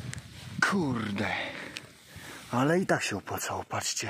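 An antler scrapes on grassy ground as a hand picks it up.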